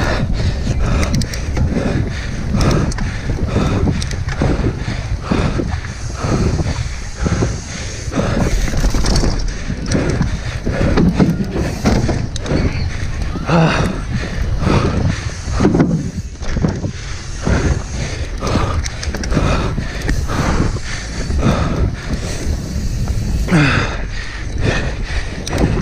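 A bike rattles and clatters over bumps.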